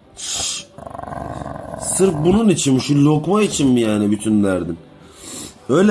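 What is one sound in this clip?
A dog grumbles and moans in long, wavering howls.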